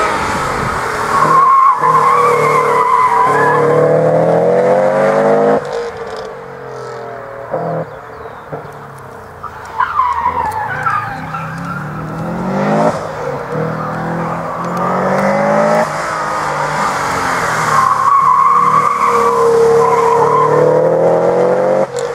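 Car tyres squeal on tarmac.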